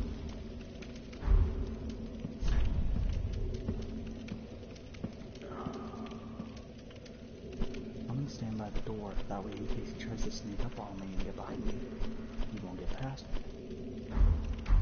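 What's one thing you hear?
Soft menu clicks tick as items are browsed.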